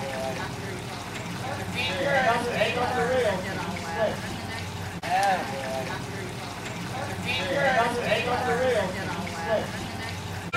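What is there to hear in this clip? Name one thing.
A young child calls out nearby outdoors.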